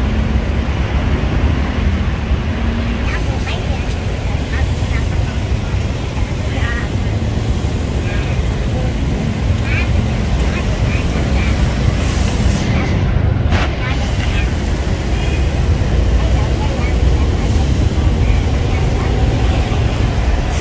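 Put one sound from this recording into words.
Motorcycle engines idle and rumble close by outdoors.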